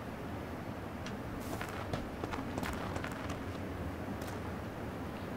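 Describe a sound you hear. Footsteps shuffle softly over grass and gravel.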